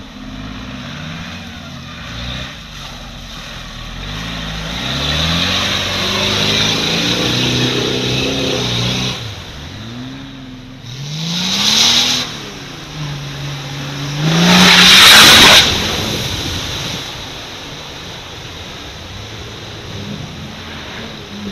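An off-road vehicle's engine revs hard, rising and falling.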